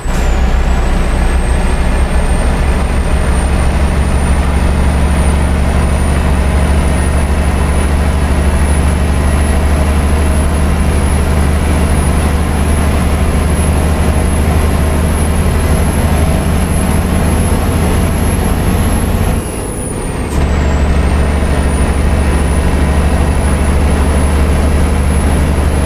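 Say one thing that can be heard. A high engine whine rises slowly.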